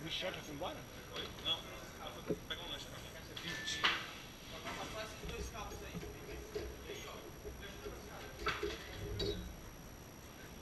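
Metal drum hardware clanks and rattles.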